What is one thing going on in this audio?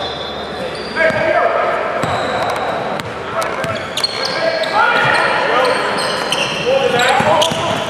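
Young men shout to each other across an echoing gym.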